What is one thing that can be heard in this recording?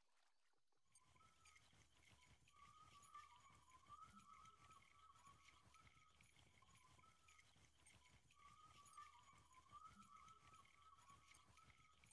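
A fishing reel clicks and whirs steadily as line is wound in.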